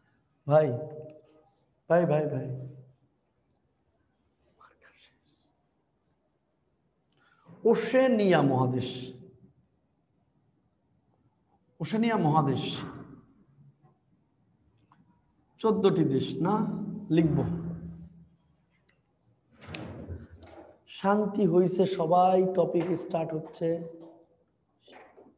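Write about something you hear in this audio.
A young man speaks calmly in short bursts, close by.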